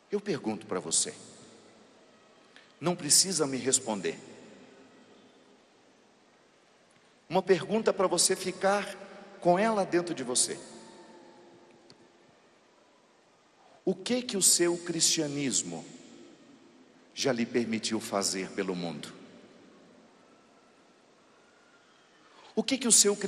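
A man speaks loudly through loudspeakers in short bursts, echoing across a large hall.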